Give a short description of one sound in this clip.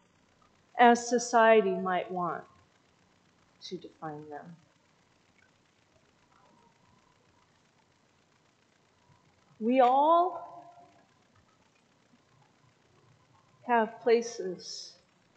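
A woman speaks slowly and calmly through a microphone, with long pauses.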